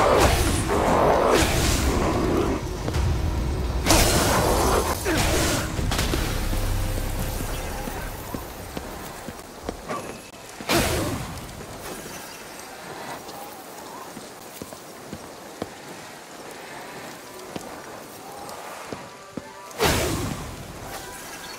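Magic blasts crackle and burst in sharp bursts.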